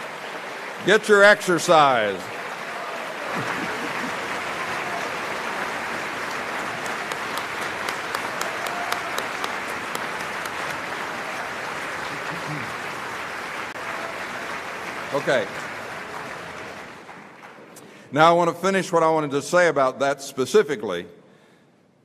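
An elderly man speaks calmly through a microphone in a large hall.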